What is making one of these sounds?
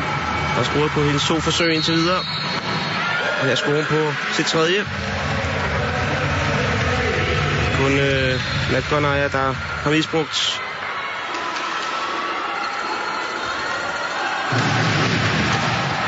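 A large crowd cheers and roars in a big echoing hall.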